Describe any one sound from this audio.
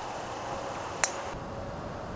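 A golf club strikes a ball with a sharp click.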